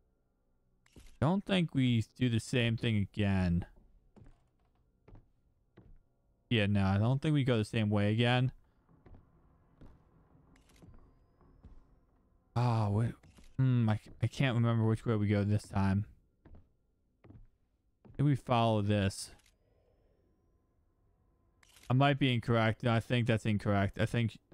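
A man talks with animation into a close microphone, in bursts.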